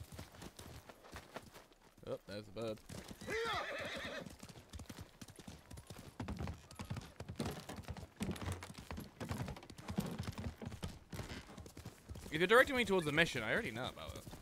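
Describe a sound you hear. A horse's hooves gallop over grass and dirt.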